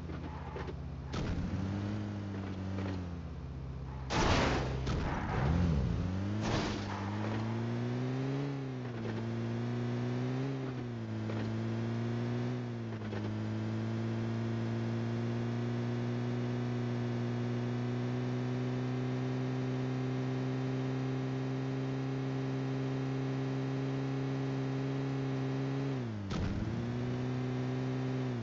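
A vehicle engine hums and revs, rising and falling in pitch.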